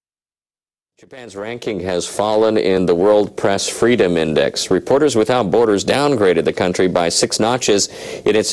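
A middle-aged man speaks calmly and steadily, close to a microphone.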